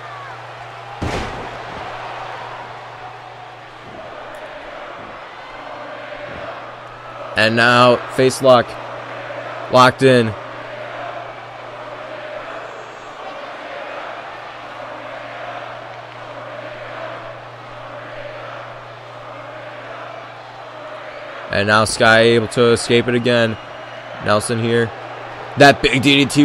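A large crowd murmurs and cheers steadily in a big echoing hall.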